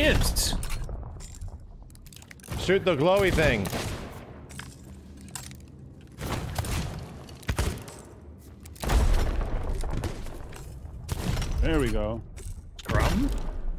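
A man talks with animation through a microphone.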